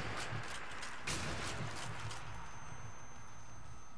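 A rifle fires a sharp shot.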